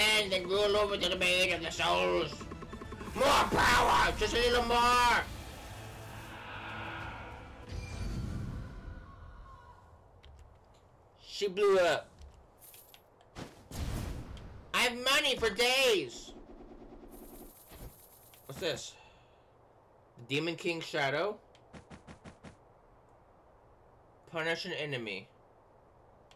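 A man talks animatedly into a headset microphone, close by.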